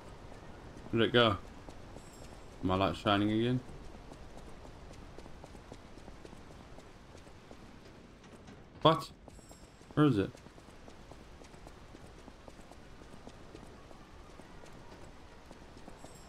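Footsteps run across a hard stone floor.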